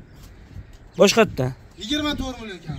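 A young man speaks loudly and with animation close by.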